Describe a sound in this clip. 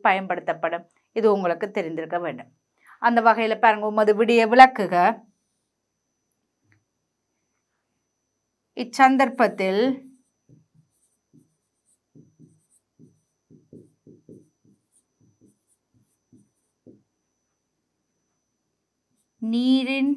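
A woman speaks calmly and clearly into a close microphone, in bursts with pauses.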